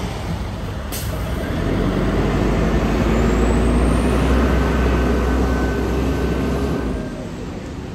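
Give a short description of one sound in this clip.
A bus engine rumbles loudly as the bus pulls away nearby.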